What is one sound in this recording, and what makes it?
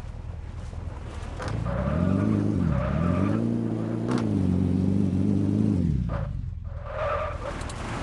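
Tyres screech as a car skids on dirt.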